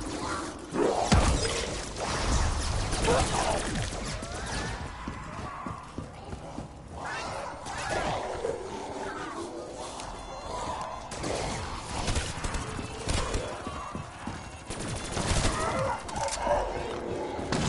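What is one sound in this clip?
A gun fires in sharp, loud bursts.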